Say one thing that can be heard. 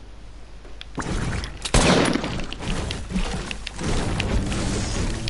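Gunshots crack sharply, one after another.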